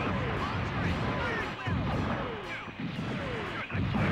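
Shells explode with deep booms.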